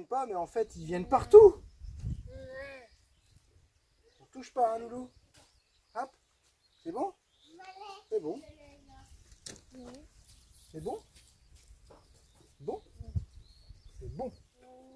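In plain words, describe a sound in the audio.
A young child talks in short bursts close by.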